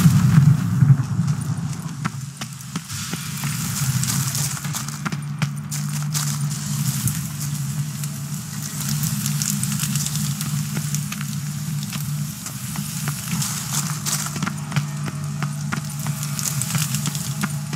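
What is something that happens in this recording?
Fire crackles in a brazier.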